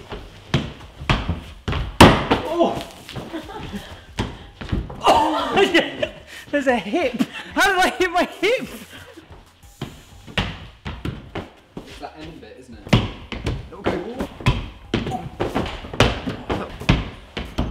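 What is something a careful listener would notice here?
Shoes thud and scuff against a wall.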